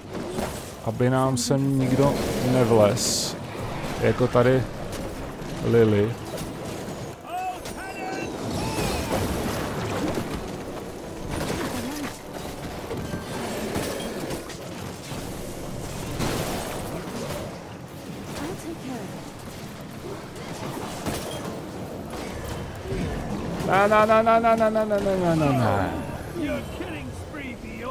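Game combat effects crackle, whoosh and burst.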